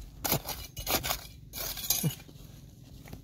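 A metal tool scrapes and digs through dry gravelly soil.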